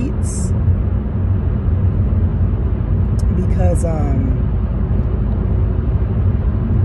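A low, steady rumble of a car driving fills the background.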